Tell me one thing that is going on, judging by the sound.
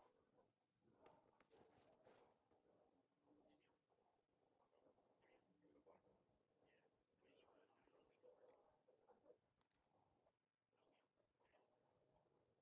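Masking tape is peeled off paper with a soft tearing rustle.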